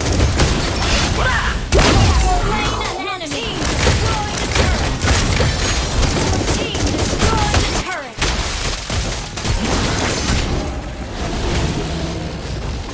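Magic blasts, whooshes and hits crackle in a fast battle.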